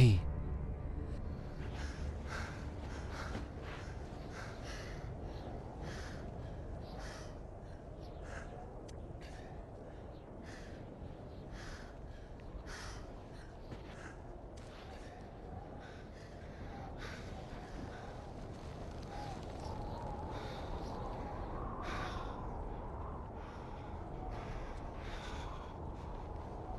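A man breathes heavily.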